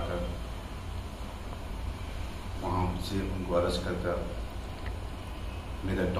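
A middle-aged man speaks calmly into a microphone close by.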